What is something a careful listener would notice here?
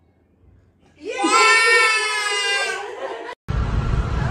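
A toddler squeals with delight.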